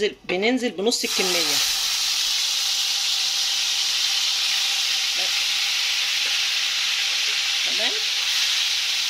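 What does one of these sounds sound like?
Hot oil sizzles loudly as a wet paste is dropped into it.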